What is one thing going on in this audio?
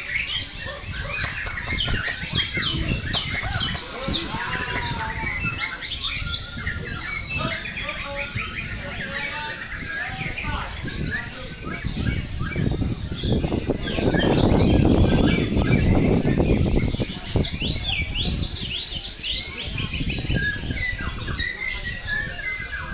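A caged songbird sings loud, varied chirps and whistles.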